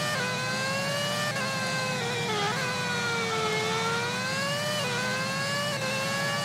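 A racing car engine whines at high revs, its pitch rising and falling with gear changes.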